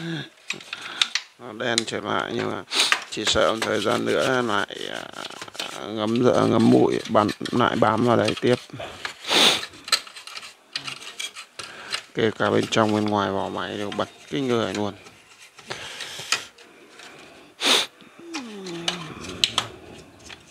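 A screwdriver clicks and scrapes against a metal chassis.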